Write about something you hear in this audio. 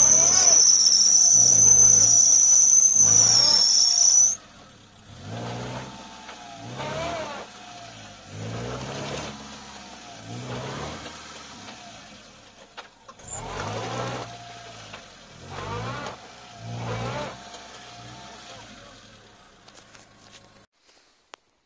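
A car engine idles nearby.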